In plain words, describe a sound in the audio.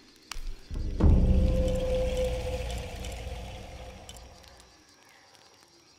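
A deep booming chime swells and slowly fades.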